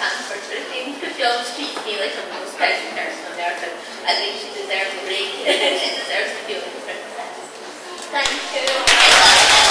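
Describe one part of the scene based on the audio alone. A crowd of people chatter in a room.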